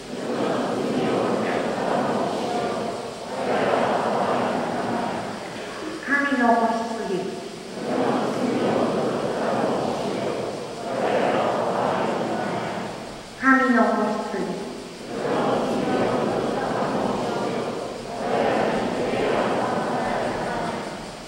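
An elderly man reads out a prayer through a microphone in a large echoing hall.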